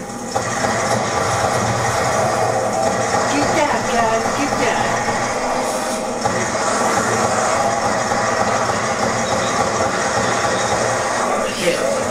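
Gunfire and explosions from a video game play loudly through television speakers.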